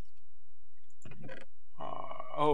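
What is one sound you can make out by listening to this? A wooden chest creaks open.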